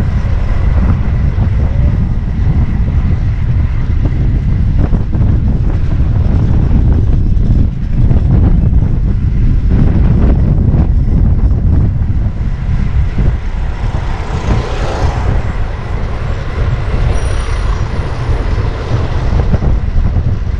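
City traffic hums and rumbles nearby.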